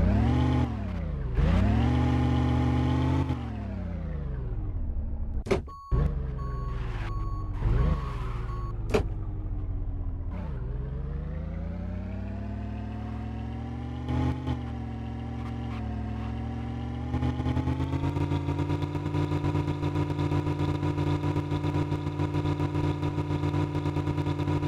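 An engine revs up and down, rising and falling in pitch, then holds a steady drone.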